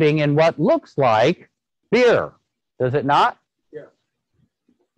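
A man speaks calmly into a microphone, heard as if through an online call.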